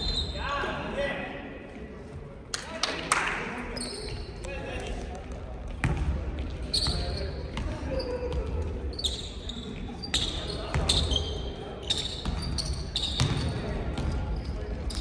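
Sneakers squeak on a wooden court in a large echoing gym.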